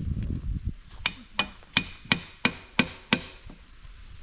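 A hammer knocks sharply on wood.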